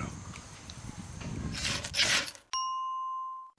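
A bone tool scrapes and rasps against a hard edge, close by.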